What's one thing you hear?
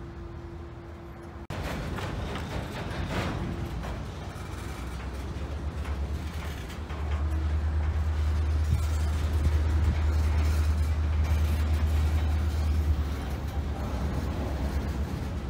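A freight train rumbles past at close range.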